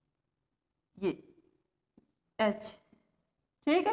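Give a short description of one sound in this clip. A woman speaks in short bursts, close by, as if teaching.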